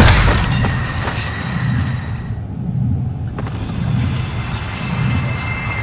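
Footsteps thud steadily on a hard floor as someone runs.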